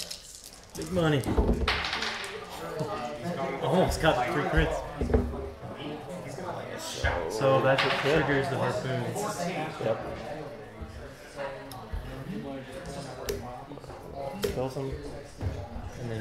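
Plastic game pieces click softly on a table.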